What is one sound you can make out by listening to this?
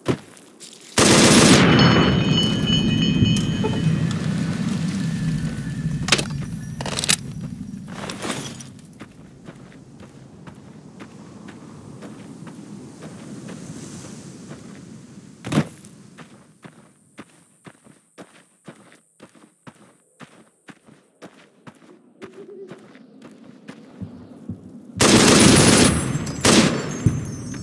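A rifle fires a loud burst of shots with ringing echoes.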